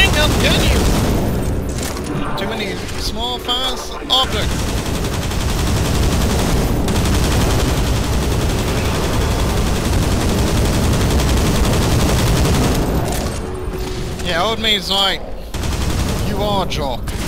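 A large robot hums and crackles with electric energy.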